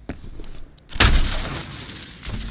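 A wooden crate smashes apart with a loud crack.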